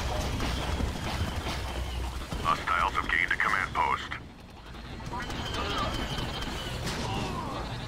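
A laser blaster fires in short bursts.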